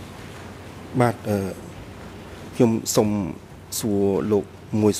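A man speaks steadily into a microphone.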